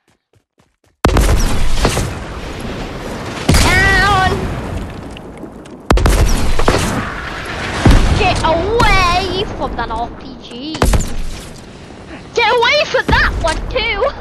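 Rockets fire and explode with loud booms.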